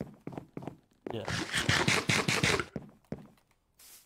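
Someone munches and crunches a carrot.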